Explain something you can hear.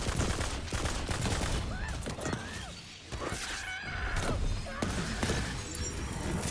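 A video game energy weapon fires in rapid bursts.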